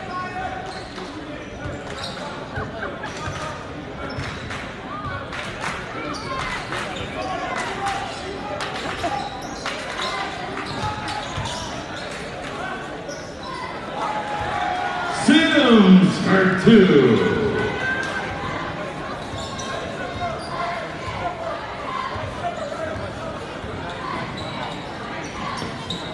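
A crowd murmurs and chatters in a large echoing gym.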